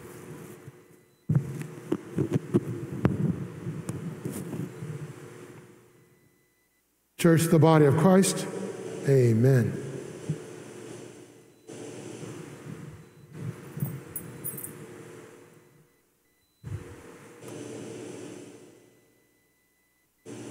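A man speaks and chants through a microphone in a large echoing hall.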